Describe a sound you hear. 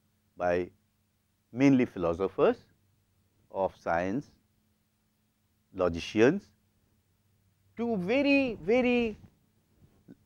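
A middle-aged man speaks calmly into a clip-on microphone, in short bursts with pauses.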